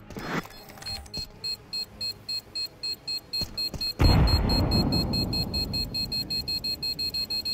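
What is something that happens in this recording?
A bomb beeps steadily and quickly.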